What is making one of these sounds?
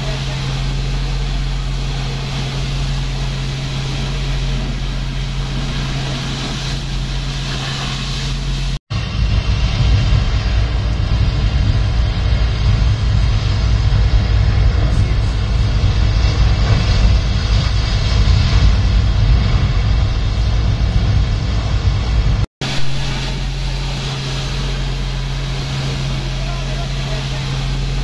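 A fire hose sprays a powerful, steady hissing jet of water.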